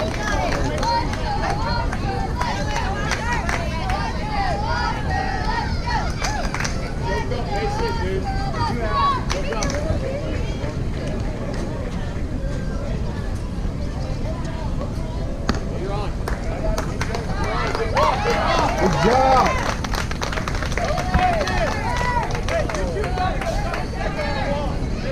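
Distant players call out faintly across an open field outdoors.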